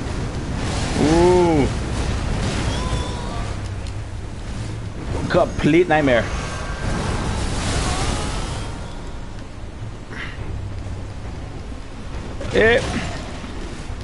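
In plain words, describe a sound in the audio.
A huge creature lets out deep, wailing roars.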